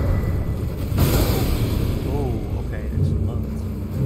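A fiery explosion booms and roars.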